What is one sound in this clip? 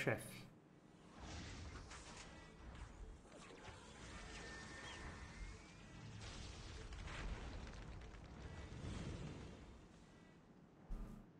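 A heavy robot's jet thrusters roar as it lifts off.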